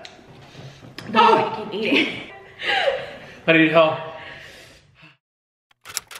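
A young woman laughs and talks with animation close by.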